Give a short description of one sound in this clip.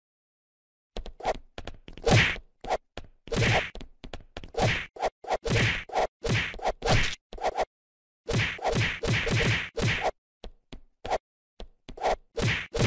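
A cartoon laser gun fires in rapid bursts.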